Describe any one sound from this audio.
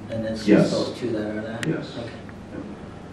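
An older man speaks briefly and calmly into a microphone.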